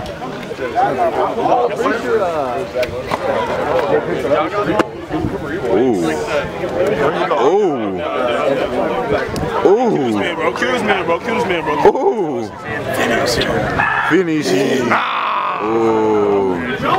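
Young men talk and joke loudly with animation close by, outdoors.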